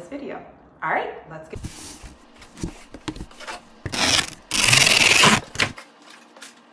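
Cardboard box flaps rustle and scrape.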